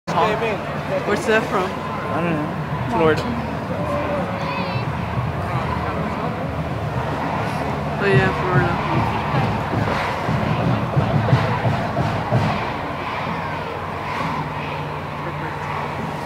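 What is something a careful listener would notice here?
A crowd of men and women murmurs and chatters close by outdoors.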